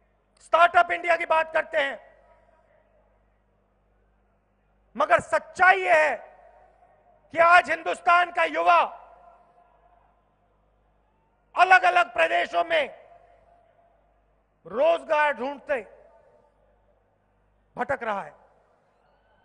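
A man speaks forcefully into a microphone over loudspeakers, in short bursts with pauses.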